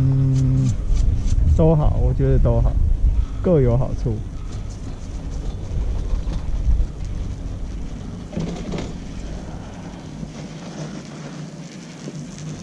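Skis hiss and scrape steadily over packed snow.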